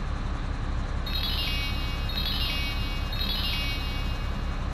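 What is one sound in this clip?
Coins chime in quick repeated jingles.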